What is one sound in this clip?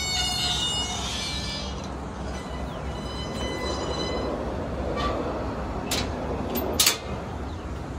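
A metal gate latch clicks and clanks.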